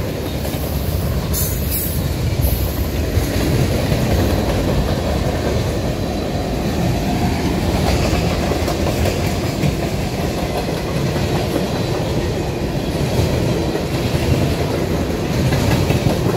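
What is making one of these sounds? A freight train rumbles past close by, its wheels clattering over the rail joints.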